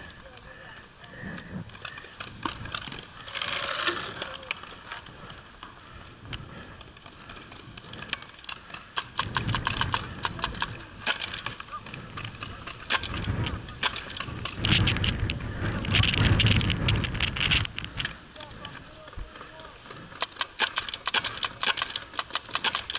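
Paintball markers pop in the distance outdoors.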